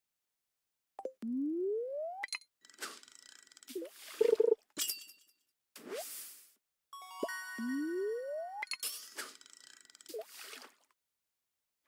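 Game sound effects chime and whoosh as a fishing line is cast and reeled.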